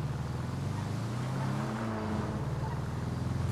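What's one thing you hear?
A car engine passes by close.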